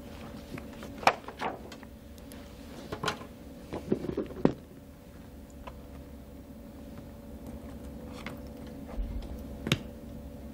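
A bag's clasp clicks and rustles as it is opened.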